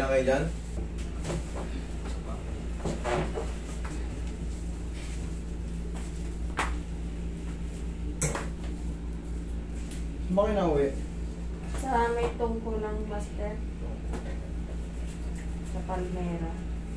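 An air conditioner hums steadily.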